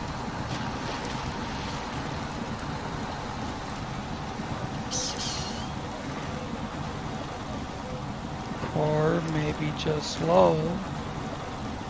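Mud and water splash under a truck's tyres.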